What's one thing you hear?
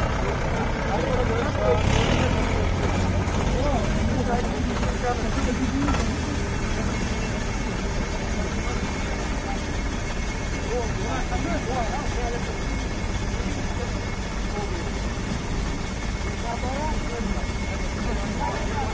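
A group of men talk quietly nearby outdoors.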